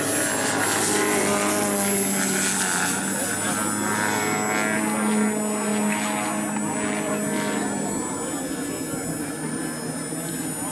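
A model airplane engine whines loudly overhead, rising and falling in pitch as the plane turns.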